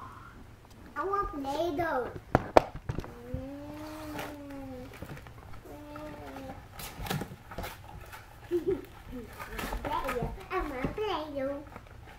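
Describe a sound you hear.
A young child talks and babbles close by.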